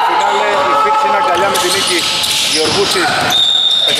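A basketball bounces on a wooden court floor.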